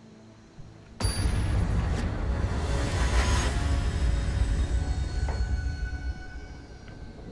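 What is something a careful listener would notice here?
A deep, booming musical swell rises as a game match begins.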